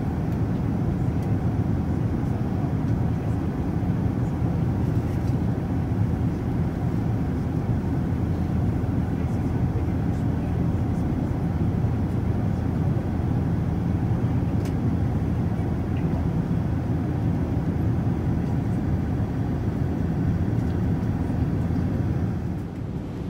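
Jet engines roar in a steady low rumble, heard from inside an airliner cabin.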